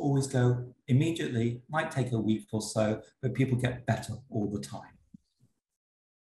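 A middle-aged man speaks calmly and close to a microphone, heard through an online call.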